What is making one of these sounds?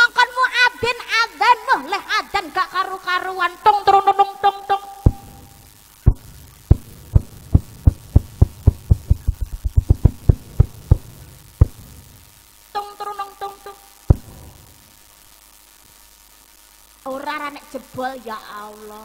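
A young woman sings expressively into a microphone through loudspeakers.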